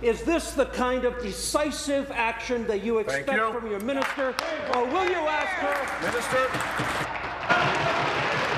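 A man speaks forcefully through a microphone in a large room.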